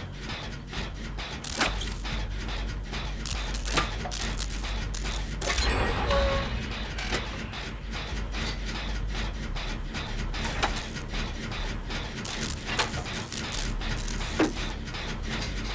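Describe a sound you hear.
Metal parts of an engine click and clank as hands work on it.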